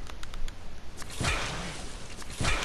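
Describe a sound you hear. A bright magical shimmer swells up and crackles.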